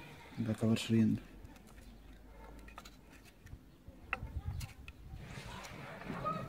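A screwdriver clicks and scrapes against small metal screws.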